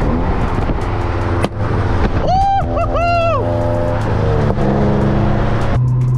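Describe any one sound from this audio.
A nearby sports car engine revs loudly as it passes.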